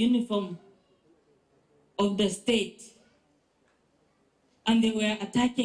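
A middle-aged woman speaks emotionally into a microphone, in short bursts with pauses.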